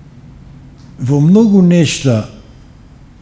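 An elderly man speaks slowly into a microphone.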